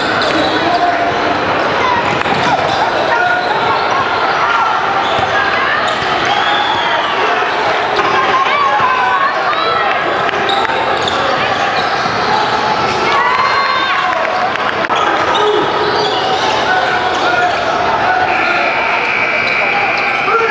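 Many voices chatter and shout around a large echoing hall.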